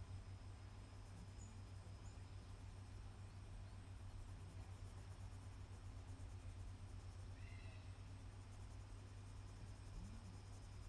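A pastel scratches softly on paper.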